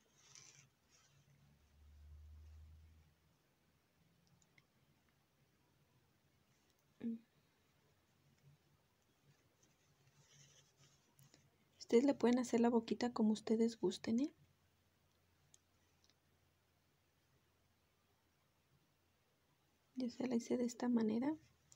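A needle pulls thread softly through crocheted yarn.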